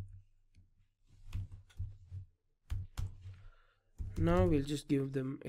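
Keys on a keyboard click in short bursts.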